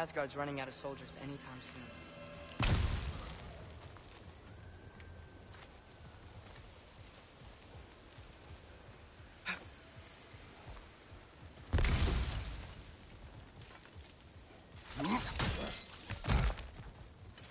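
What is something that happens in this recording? Heavy footsteps crunch over leaves and stone.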